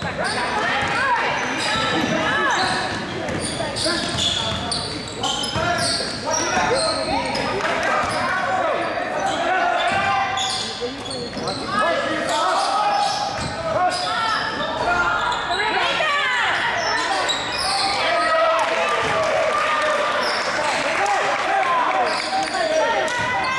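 A crowd of spectators chatters and cheers, echoing in a large gym.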